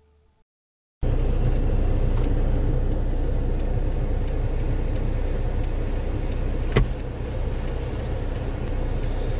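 A car engine hums steadily with low road rumble inside the car.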